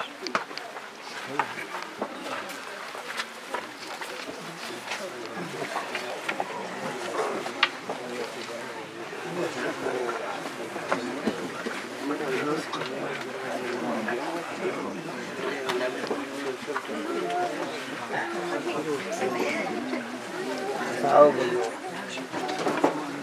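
A crowd of men murmurs and talks nearby.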